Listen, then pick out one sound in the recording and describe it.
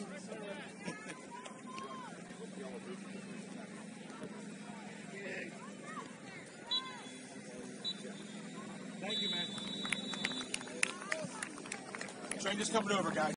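Spectators shout and chatter across an open field.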